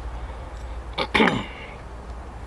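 A knife knocks down onto a wooden board.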